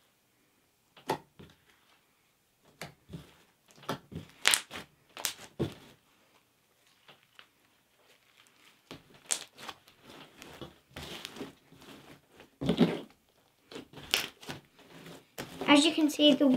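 Slime squelches and pops as hands knead it.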